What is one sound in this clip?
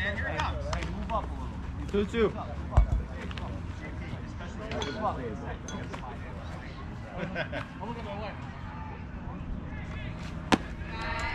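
Children call out and chatter across an open outdoor field.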